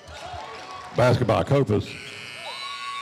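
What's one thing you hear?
A crowd cheers loudly.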